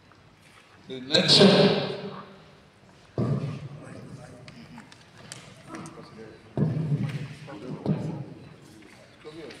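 A man speaks loudly nearby, in short bursts.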